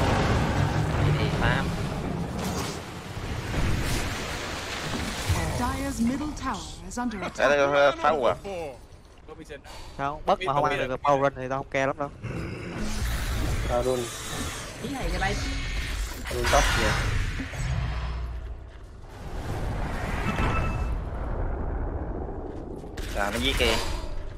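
Game spell effects and combat sounds crackle and clash throughout.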